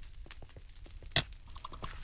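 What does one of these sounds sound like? A sword swings and strikes.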